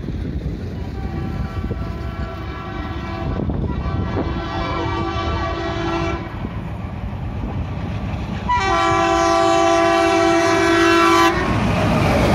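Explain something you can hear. A diesel train horn blares loudly several times as the train approaches.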